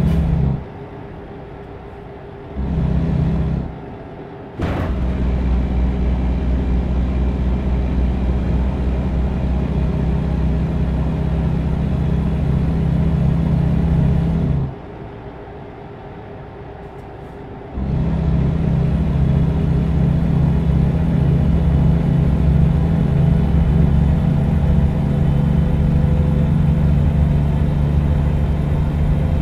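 A truck's diesel engine rumbles steadily, dropping away now and then.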